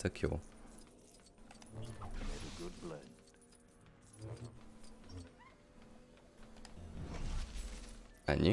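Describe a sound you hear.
Small plastic pieces shatter and clatter.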